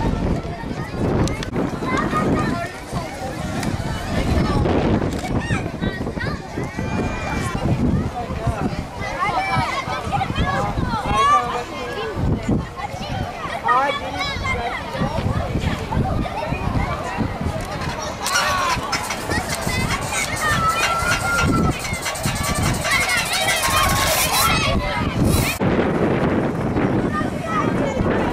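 Children shout and laugh while playing.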